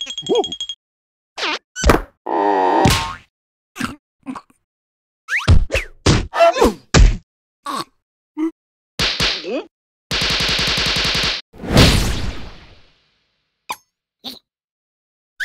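Cartoon creatures babble and squeal in high, silly voices.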